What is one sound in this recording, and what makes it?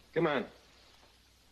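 A man speaks loudly and briefly.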